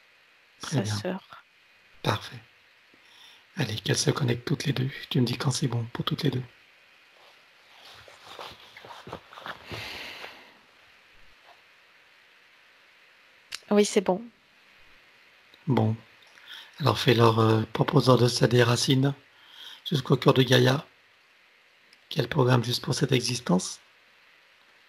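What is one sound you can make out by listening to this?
A middle-aged man speaks calmly and warmly through a headset microphone over an online call.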